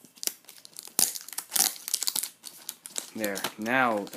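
Sticky tape crackles as it is peeled off a box.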